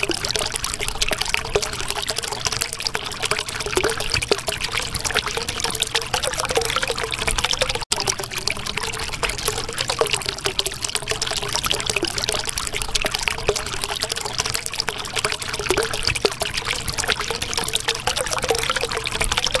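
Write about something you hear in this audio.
Water bubbles and gurgles steadily.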